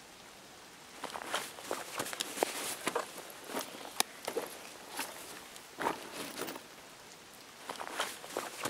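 Items click and shuffle in quick bursts.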